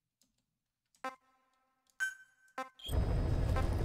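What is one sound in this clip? Electronic menu blips sound as selections change.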